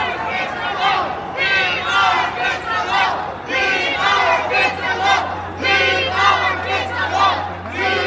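A man shouts loudly with energy nearby.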